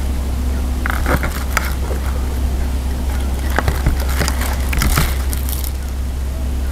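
Spoons and bowls clink and clatter.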